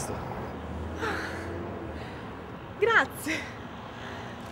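A young woman laughs brightly.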